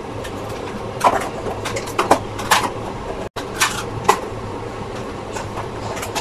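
Plastic lids click and snap shut onto containers.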